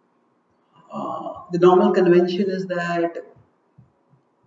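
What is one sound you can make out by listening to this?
A man chants in a sustained, singing voice through a headset microphone.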